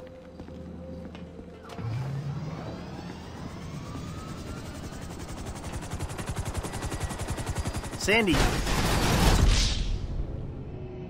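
A helicopter's rotor whirs loudly.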